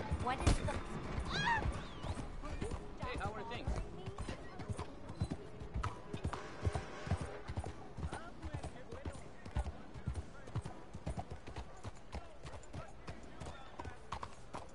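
Horse hooves clop steadily on a dirt street.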